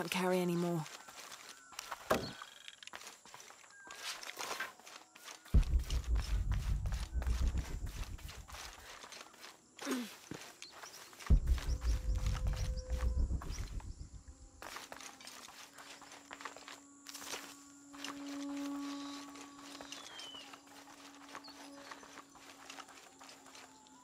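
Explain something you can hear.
Footsteps patter quickly over grass and stone.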